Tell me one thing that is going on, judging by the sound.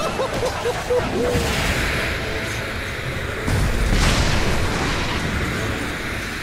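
Magic spell effects whoosh and burst.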